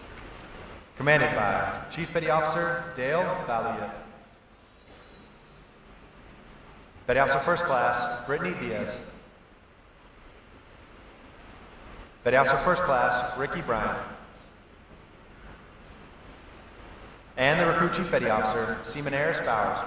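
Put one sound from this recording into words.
A man speaks in bursts over a loudspeaker, echoing through a large hall.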